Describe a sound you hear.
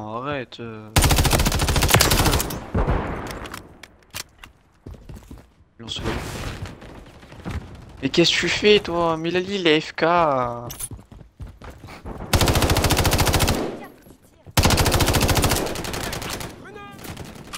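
A rifle fires rapid bursts of shots, close by.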